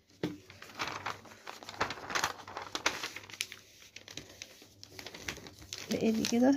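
Sheets of paper rustle and crinkle as they are handled.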